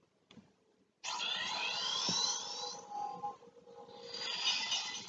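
A bright, twinkling chime sweeps upward as a shooting star streaks by.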